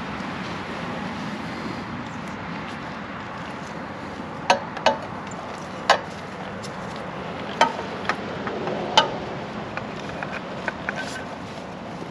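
Gloved hands handle a metal oil filter, with light clicks and taps.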